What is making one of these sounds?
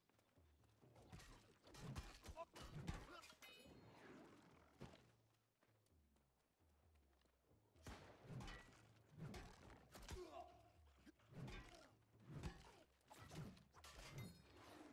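Weapons clash and strike in a video game fight.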